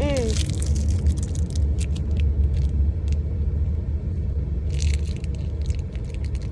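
A car engine and road noise rumble steadily.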